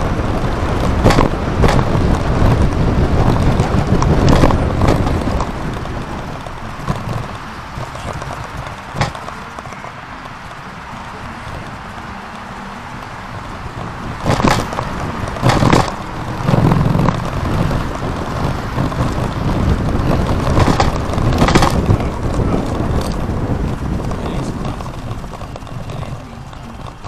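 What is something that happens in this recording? Tyres roll over pavement, thudding on occasional bumps.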